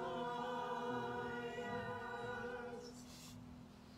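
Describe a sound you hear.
A woman sings a held note into a microphone.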